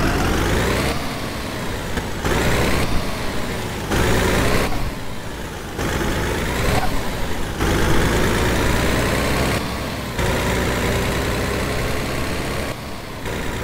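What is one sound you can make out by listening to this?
A heavy truck engine rumbles steadily as the truck drives along a road.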